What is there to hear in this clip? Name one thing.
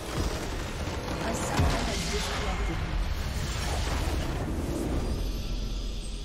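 A game's crystal explodes with a loud rumbling blast.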